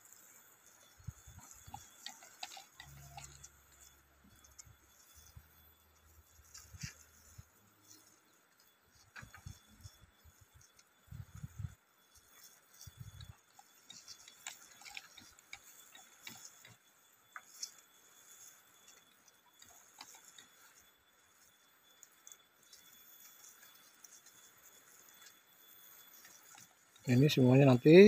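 A hand sprayer hisses as it sprays a fine mist.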